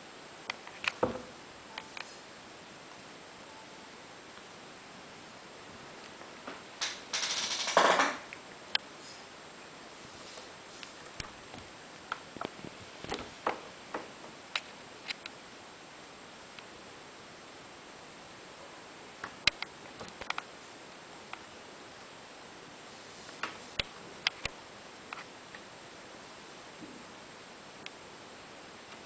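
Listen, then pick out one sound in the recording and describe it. A cat's paws tap and scrape close by.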